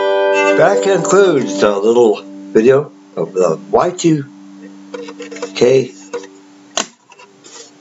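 Mandolin strings ring and slowly fade.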